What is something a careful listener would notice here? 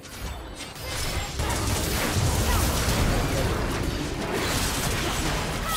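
Magical spell blasts crackle and boom in a busy video game battle.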